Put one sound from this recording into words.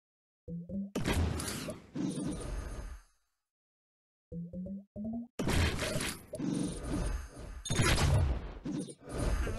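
Bright game chimes and pops ring out as pieces match and burst.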